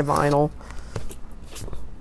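A plastic scraper rubs and squeaks across a smooth sheet.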